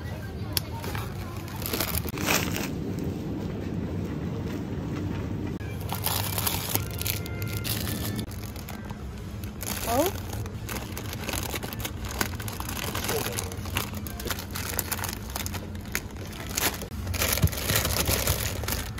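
Plastic packaging crinkles as a hand handles it.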